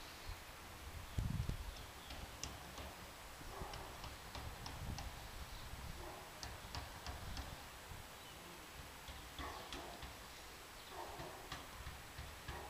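Wood crackles faintly as it smoulders.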